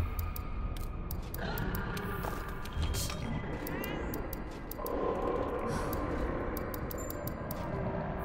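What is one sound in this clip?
Menu selections click and chime in quick taps.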